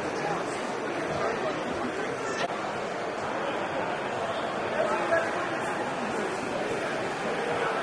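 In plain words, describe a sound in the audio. A crowd of people chatters steadily in the background.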